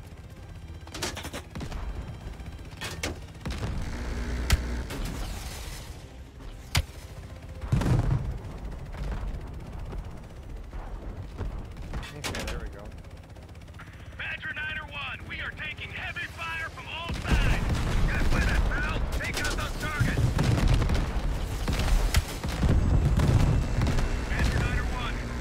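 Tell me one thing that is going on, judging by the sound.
Rockets explode with heavy booms.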